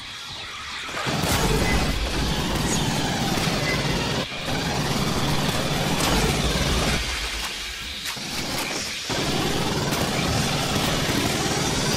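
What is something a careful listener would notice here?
Automatic gunfire rattles loudly in rapid bursts.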